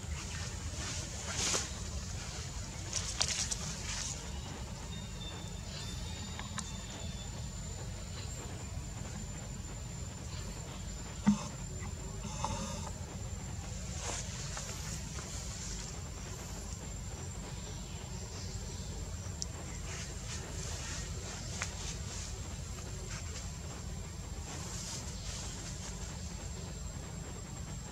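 A monkey's fingers rustle softly through another monkey's fur.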